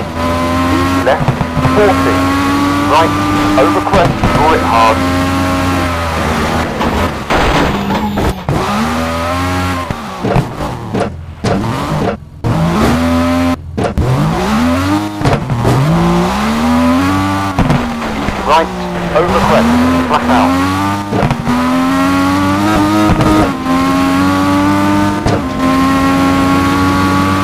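A rally car engine roars, revving up and down as it shifts gears.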